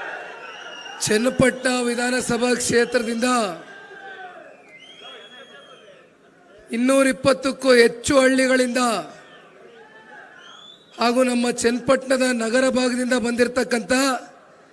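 A man speaks forcefully through loudspeakers, in bursts with pauses.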